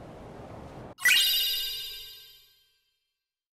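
A bright shimmering chime rings out and fades.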